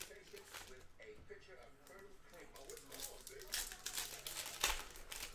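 Cardboard cards flick and rustle in someone's hands.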